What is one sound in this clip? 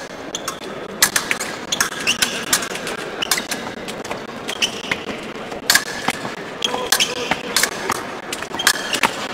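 Fencing blades clash and scrape together in quick, sharp clicks.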